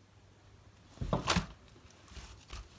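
A plastic sheet crinkles as it is peeled from slime.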